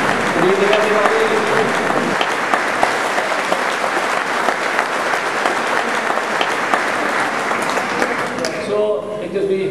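A large crowd applauds in an echoing hall.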